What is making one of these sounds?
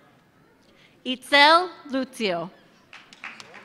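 A woman whoops and cheers loudly nearby.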